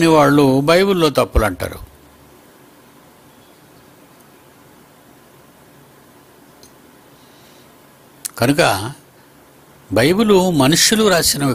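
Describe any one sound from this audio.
An elderly man speaks calmly into a close microphone, pausing between phrases.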